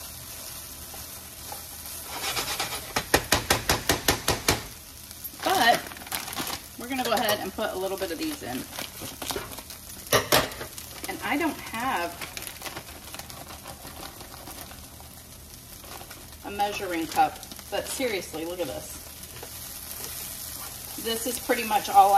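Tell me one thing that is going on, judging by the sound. A wooden spoon scrapes and stirs food in a pan.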